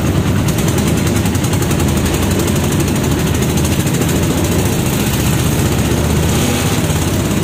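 A motorbike engine rumbles steadily close by.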